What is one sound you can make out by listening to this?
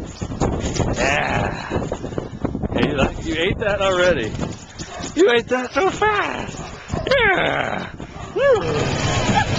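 A husky whines and howls in drawn-out, wavering calls.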